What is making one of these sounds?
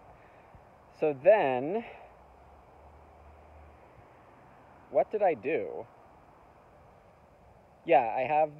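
A young man speaks calmly close to the microphone, in short bursts.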